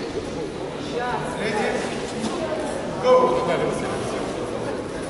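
A man calls out loudly, his voice echoing.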